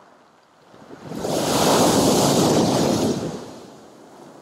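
A large wave crashes loudly against a concrete pier.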